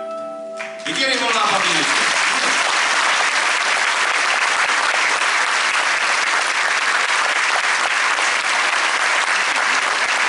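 A large audience claps loudly and steadily.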